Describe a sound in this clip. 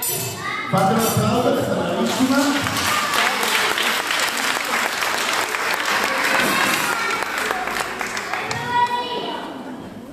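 Many children sing and chatter loudly in an echoing hall.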